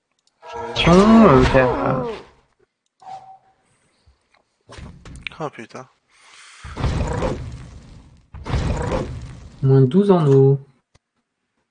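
Fantasy game sound effects whoosh and crash in short bursts.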